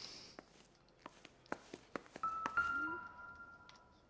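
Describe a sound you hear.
Footsteps tap across a floor.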